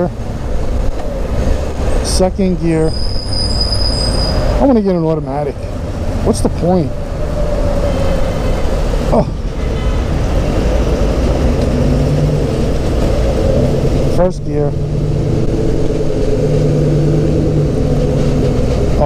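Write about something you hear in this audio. A motorcycle engine idles and revs at low speed.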